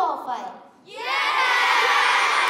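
Children cheer loudly.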